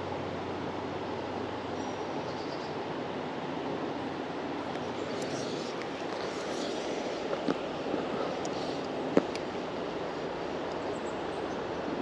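A river rushes and gurgles steadily over stones nearby.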